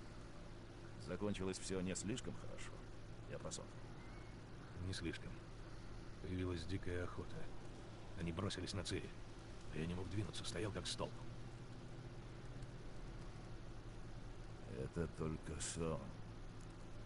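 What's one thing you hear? An older man speaks slowly and calmly, close by.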